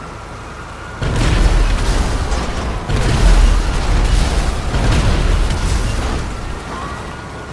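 Explosions boom and crackle nearby.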